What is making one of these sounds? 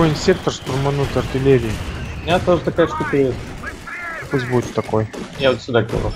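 Shells explode with heavy booms.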